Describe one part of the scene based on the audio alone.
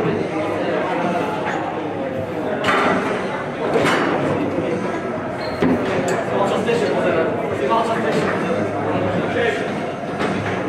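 A foosball ball clacks off the plastic players and the table's walls.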